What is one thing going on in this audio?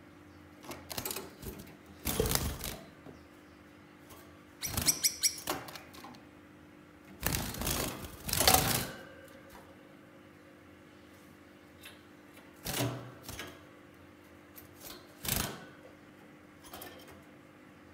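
Small birds chirp and tweet in short bursts close by.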